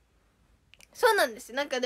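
A young woman speaks close to a phone microphone, lively and high-pitched.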